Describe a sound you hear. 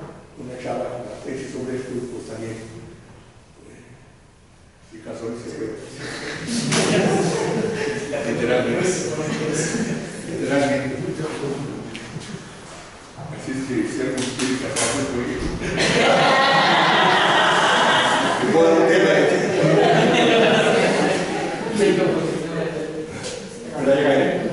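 An elderly man speaks calmly to an audience in a room with a slight echo.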